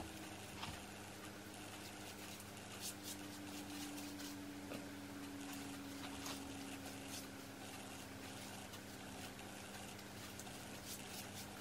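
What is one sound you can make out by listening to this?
A paintbrush brushes softly along a window frame.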